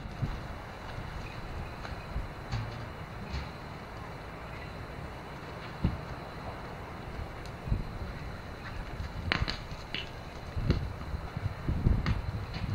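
Wind blows in gusts outdoors, rustling through trees.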